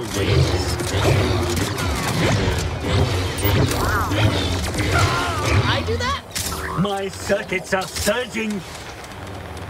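Blaster shots and explosions crackle in a fast video game fight.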